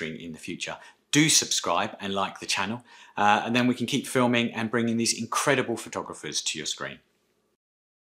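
A middle-aged man talks calmly and with animation, close to a microphone.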